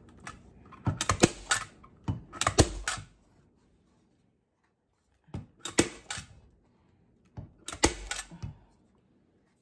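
A staple gun snaps sharply several times.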